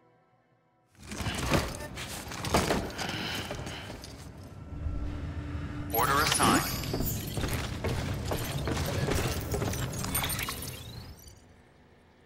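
Heavy metal cargo clanks and thuds as it is loaded.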